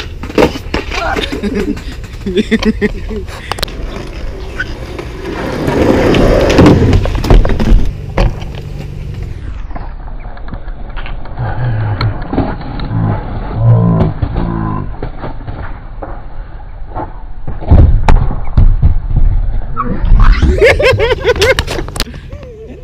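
A skateboard deck clacks and slaps against the ground.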